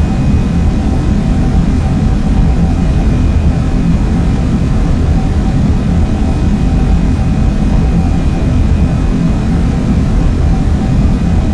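A train rumbles steadily along the tracks at high speed.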